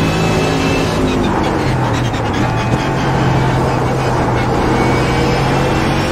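Tyres screech through a corner.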